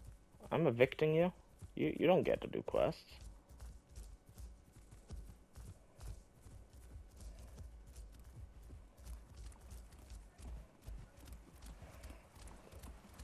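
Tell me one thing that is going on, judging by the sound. Heavy footsteps thud steadily on soft ground.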